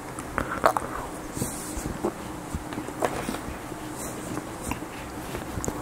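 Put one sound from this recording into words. A man chews food close up.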